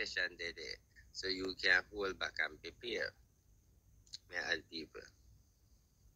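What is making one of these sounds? A woman speaks with animation close to a phone microphone.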